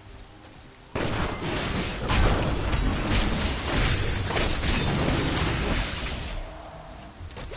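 Video game combat sounds crash and blast as spells hit.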